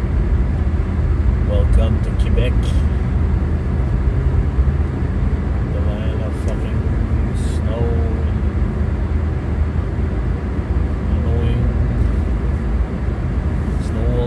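Tyres rumble and crunch over a snowy road.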